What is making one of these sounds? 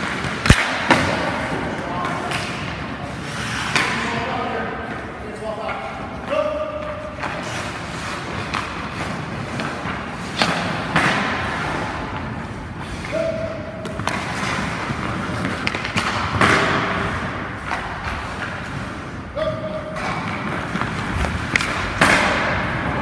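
A hockey stick slaps a puck, and the crack echoes in a large rink.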